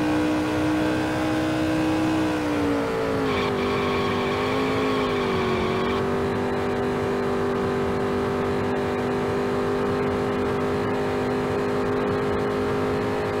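A race car engine roars at high speed, its pitch dropping a little into a bend and then holding steady.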